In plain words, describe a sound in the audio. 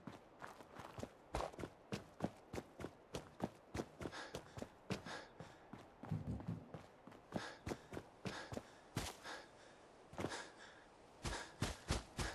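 Footsteps crunch steadily on rough ground and pavement.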